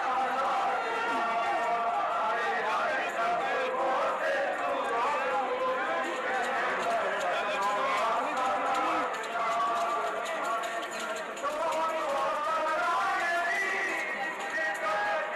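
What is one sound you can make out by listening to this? A man chants loudly in a mournful voice.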